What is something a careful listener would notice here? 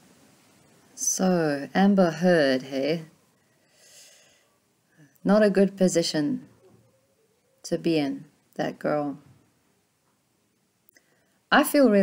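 A woman talks calmly and close to a microphone, in short bursts with pauses.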